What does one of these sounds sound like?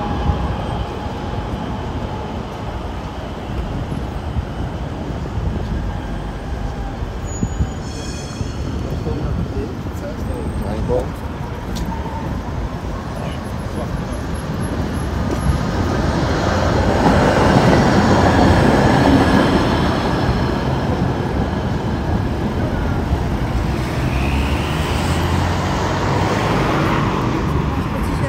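Traffic hums in the background.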